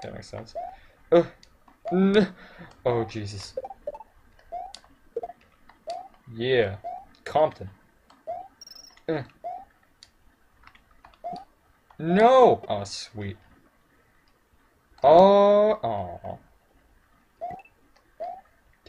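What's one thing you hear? Short chirpy video game jump sounds blip repeatedly.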